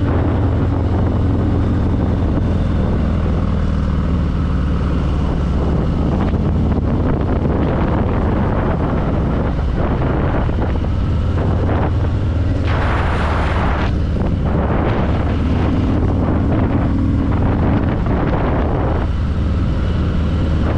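Wind rushes past loudly in bursts.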